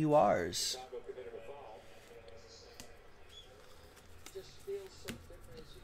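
A trading card in a plastic sleeve is handled and set down.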